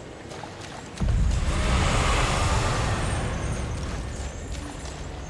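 A magical burst whooshes with a deep rumble.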